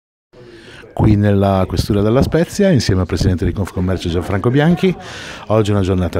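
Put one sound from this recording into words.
An elderly man speaks calmly and close to the microphone.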